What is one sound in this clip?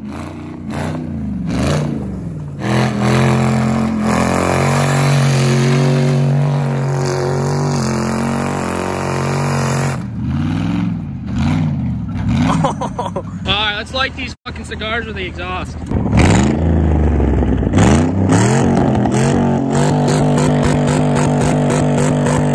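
A truck engine roars and revs hard.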